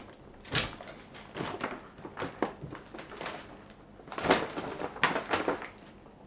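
A paper bag rustles and crinkles.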